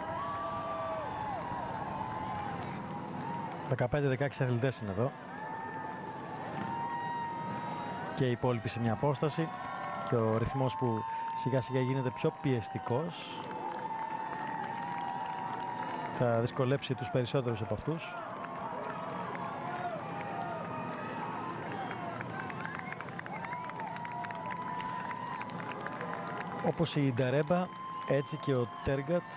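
A crowd of spectators cheers and claps along the street.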